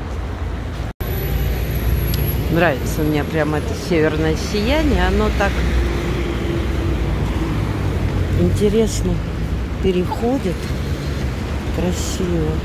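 Tyres hiss on the road as traffic drives past.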